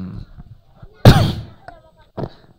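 A man coughs into a microphone.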